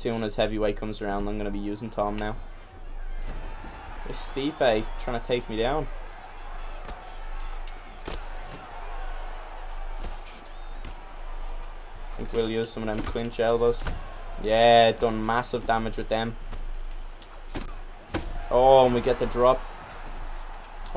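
Punches thud against bodies.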